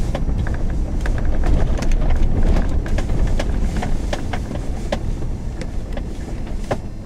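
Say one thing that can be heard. A vehicle's engine rumbles low as it drives over a rough dirt track.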